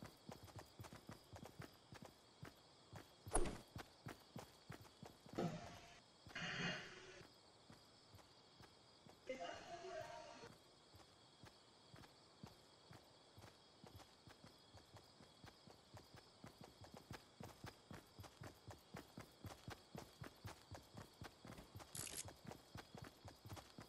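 Quick, steady footsteps run over grass.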